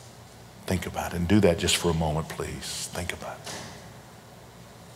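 A middle-aged man speaks with feeling into a microphone.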